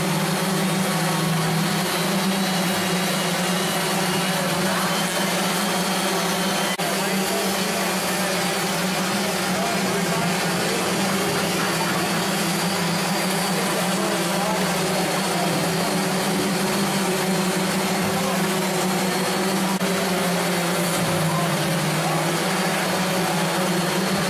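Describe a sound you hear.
Electric sanders whir steadily against wood in a large echoing hall.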